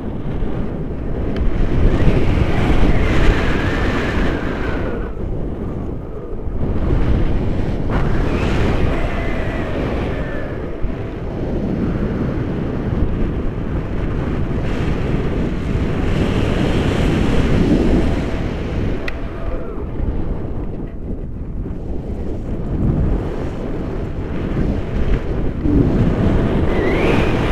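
Wind roars loudly against a microphone in open air.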